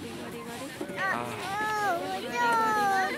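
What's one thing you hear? A young child babbles and squeals.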